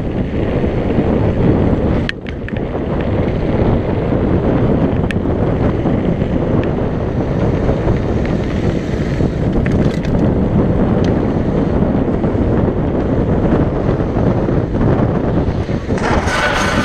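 Wind roars across the microphone of a mountain bike descending fast.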